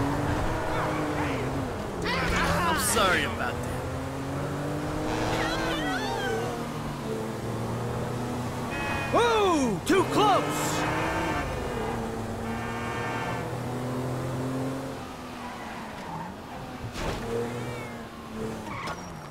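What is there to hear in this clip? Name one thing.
A car engine hums and revs steadily as the car drives along a street.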